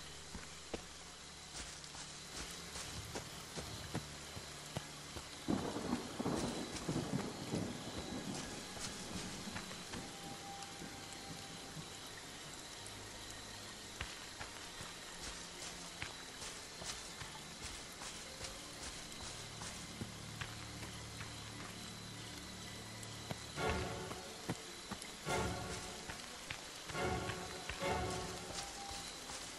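Footsteps crunch over dirt and dry leaves.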